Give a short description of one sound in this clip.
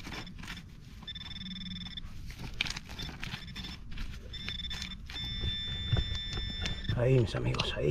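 An electronic detector beeps in high steady tones.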